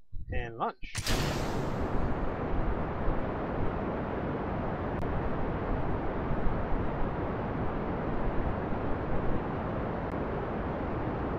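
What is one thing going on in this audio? Rocket engines roar steadily as a rocket lifts off.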